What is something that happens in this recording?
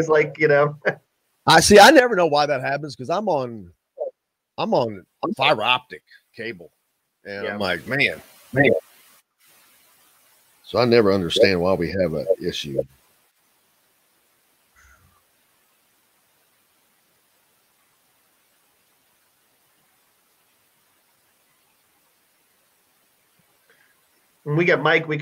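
A middle-aged man talks with animation over an online call, with long pauses.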